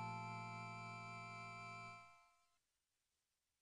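Chiptune game music plays steadily, then cuts off.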